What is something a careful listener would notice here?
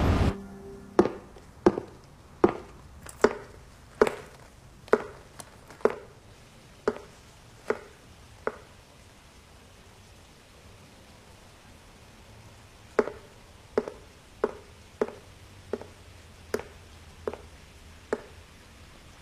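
High-heeled footsteps click slowly on a hard floor.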